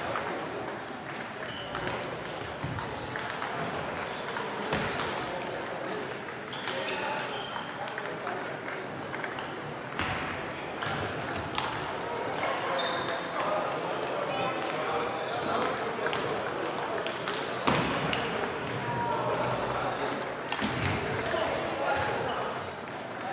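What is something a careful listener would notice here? A murmur of voices echoes through a large hall.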